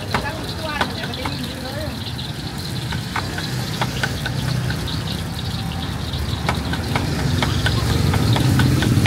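Street traffic rumbles nearby outdoors.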